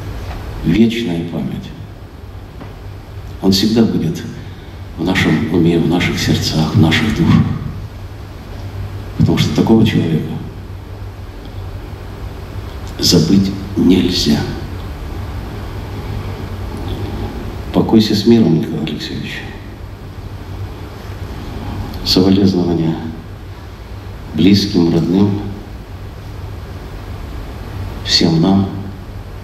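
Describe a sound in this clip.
An elderly man speaks slowly and with feeling into a microphone, with pauses, in an echoing hall.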